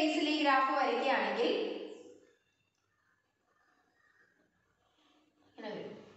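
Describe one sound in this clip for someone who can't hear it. A young woman speaks clearly and close by, explaining.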